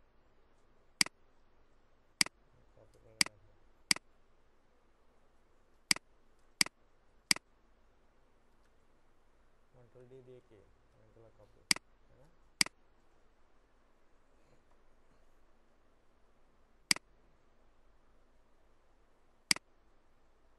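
A computer mouse clicks sharply now and then.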